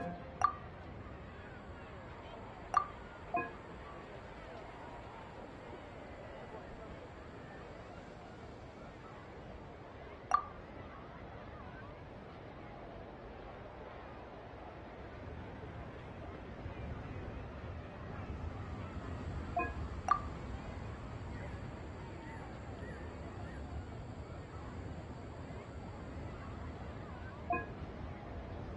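Game interface chimes ring out briefly now and then.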